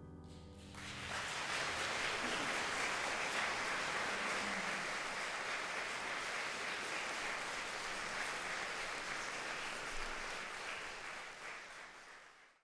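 An audience applauds loudly in a large echoing hall, then fades.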